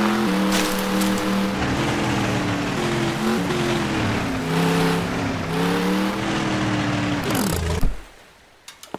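Tyres crunch on sand and rattle over wooden planks.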